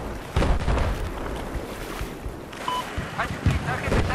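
Water splashes as a person wades through a shallow river.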